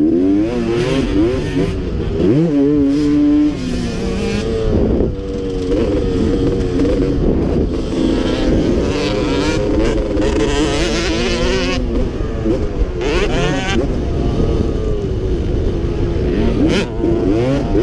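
A dirt bike engine revs loudly up close, rising and falling as gears change.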